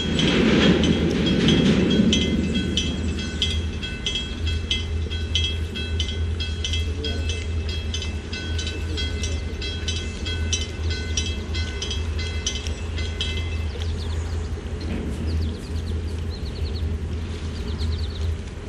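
A boat engine hums low and steady.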